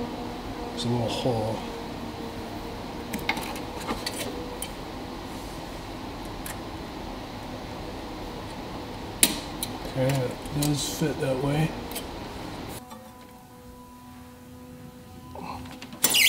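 Small metal parts click and tap close by.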